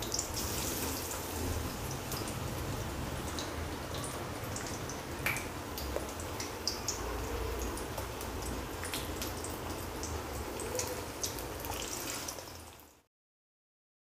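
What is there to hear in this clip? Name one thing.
Batter sizzles and crackles in hot oil.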